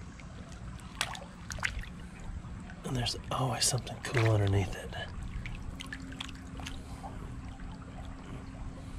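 A hand splashes in shallow water.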